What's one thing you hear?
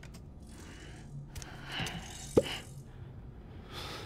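A glass jar clinks as it is picked up.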